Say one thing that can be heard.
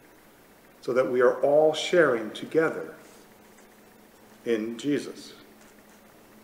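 An older man speaks calmly and slowly, close to a microphone.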